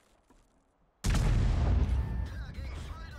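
A tank cannon fires with a loud, heavy boom.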